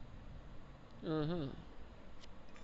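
A game plays a short, bright chime.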